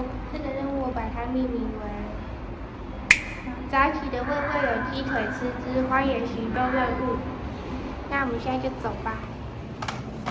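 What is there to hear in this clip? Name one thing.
A young woman talks cheerfully and animatedly close to the microphone.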